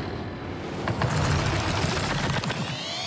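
A goal explosion booms loudly.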